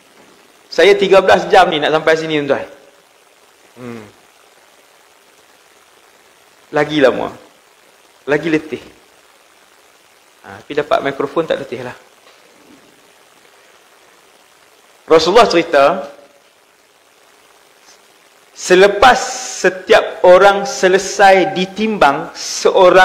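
A man speaks with animation through a close microphone, in bursts with pauses.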